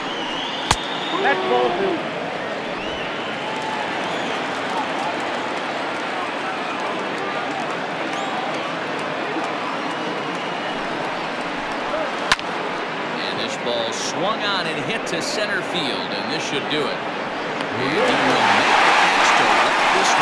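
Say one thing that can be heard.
A large crowd murmurs steadily in a big open stadium.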